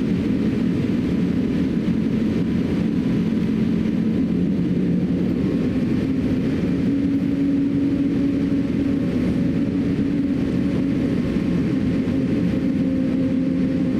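Jet engines roar steadily with a low hum inside an airliner cabin.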